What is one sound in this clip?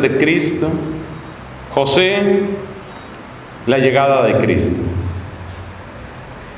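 A man chants slowly into a microphone in an echoing room.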